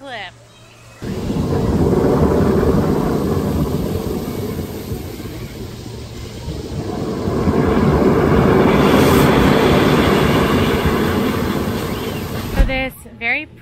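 A water spout gushes and roars in surges, outdoors.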